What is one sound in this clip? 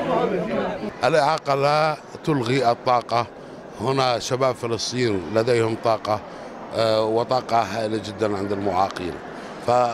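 A middle-aged man speaks calmly into a handheld microphone in a large echoing hall.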